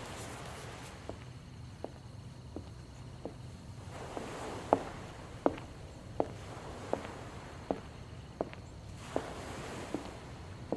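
Footsteps walk slowly on a hard road.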